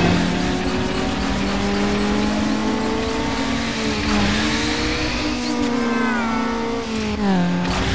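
A car engine roars and climbs in pitch, dropping briefly at each gear change.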